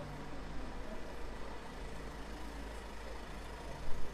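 A truck's engine idles close by with a low rumble.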